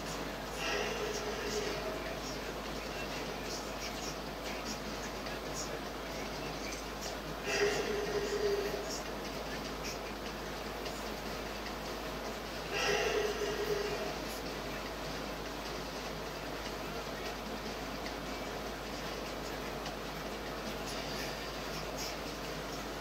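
Game music and sound effects play from a television speaker.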